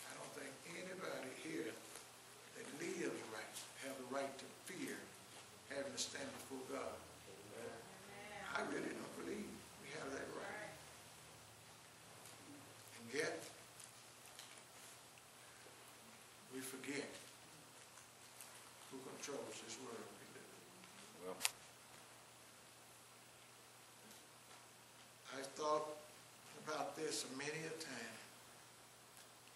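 An elderly man preaches with feeling into a microphone, in a room with a slight echo, pausing now and then.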